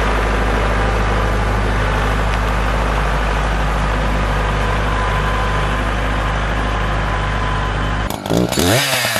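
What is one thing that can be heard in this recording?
A tractor engine runs with a steady low rumble.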